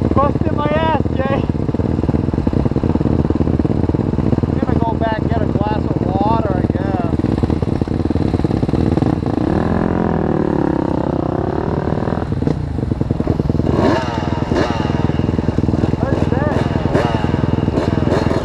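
A dirt bike engine idles close by with a loud, rattling drone.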